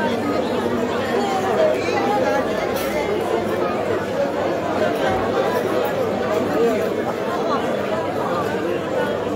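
A crowd of men and women chatters all around outdoors.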